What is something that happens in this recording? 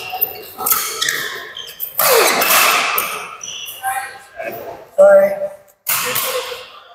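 Rackets smack a shuttlecock back and forth in an echoing hall.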